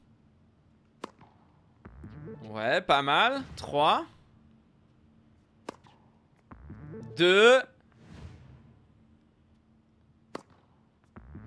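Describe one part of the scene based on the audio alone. A tennis ball is struck sharply with a racket.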